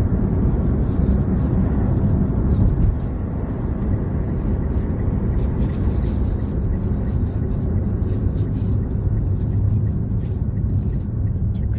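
Tyres roll on the road with a steady roar.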